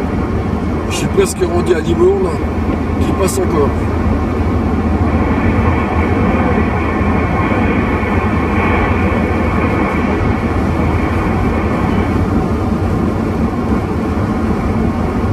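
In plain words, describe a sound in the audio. A car drives at speed on a wet road, its tyres hissing and the cabin rumbling.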